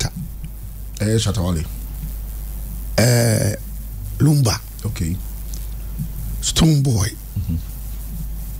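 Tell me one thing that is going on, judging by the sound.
An elderly man speaks with animation into a close microphone, in short bursts.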